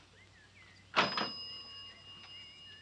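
A coin machine clanks with a short ringing chime.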